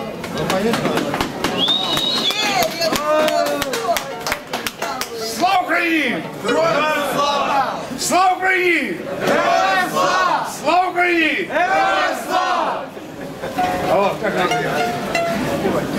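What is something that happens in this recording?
Men sing loudly together in a rousing folk song.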